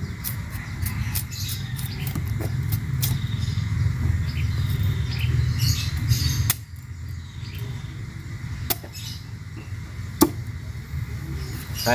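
A machete chops through sugarcane stalks.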